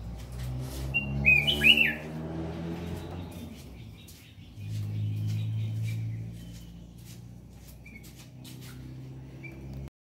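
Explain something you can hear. A small caged bird chirps in short, high calls.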